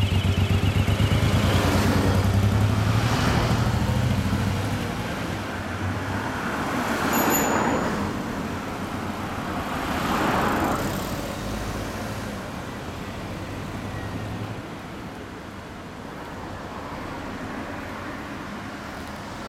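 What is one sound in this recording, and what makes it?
A motorcycle engine rumbles with a deep, throbbing idle and pulls away.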